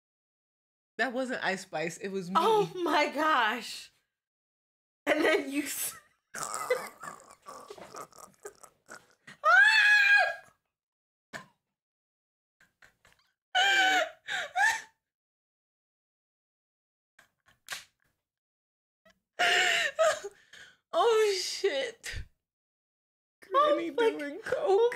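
Young women talk with animation close to a microphone.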